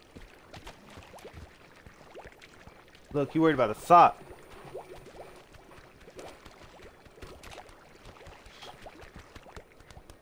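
Water trickles from a small fountain into a pond.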